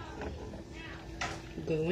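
Cooked pasta slides out of a metal pot into a pan.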